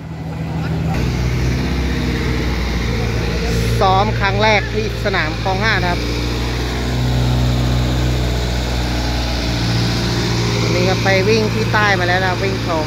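A dragster engine idles with a deep, steady rumble.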